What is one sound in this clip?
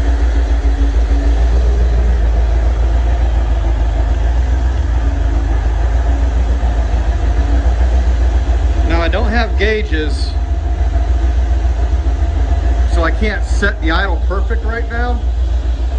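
A car engine idles with a deep, steady exhaust rumble.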